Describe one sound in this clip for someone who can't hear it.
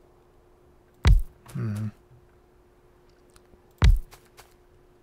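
A heavy object thumps down with a short clank.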